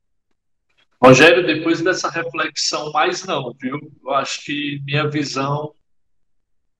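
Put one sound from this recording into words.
A man speaks calmly through a microphone in an online call.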